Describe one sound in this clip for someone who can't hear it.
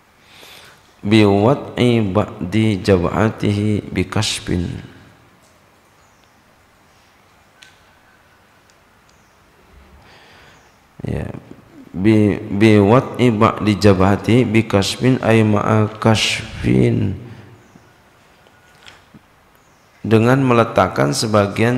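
A man chants in a melodic voice through a microphone, in bursts with pauses between.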